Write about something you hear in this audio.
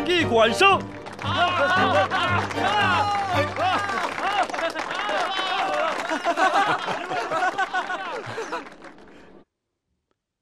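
A group of young men laugh and cheer loudly.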